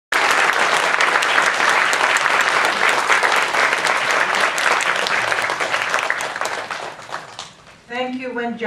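An audience applauds loudly in a hall, then the applause fades.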